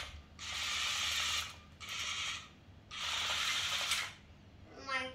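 A small toy robot's electric motor whirs in short bursts as the robot drives.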